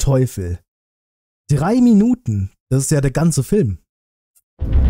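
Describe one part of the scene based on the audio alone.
A man speaks close into a microphone with animation.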